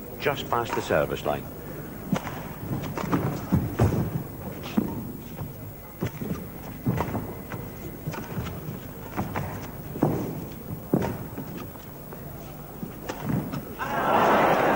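A shuttlecock is struck sharply back and forth by rackets in a large hall.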